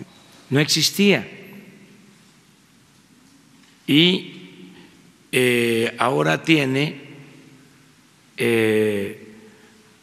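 An elderly man speaks slowly and deliberately into a microphone, in short phrases with pauses, in a room with some echo.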